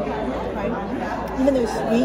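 A young woman chews and munches food.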